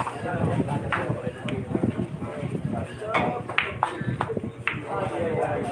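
Pool balls click against each other.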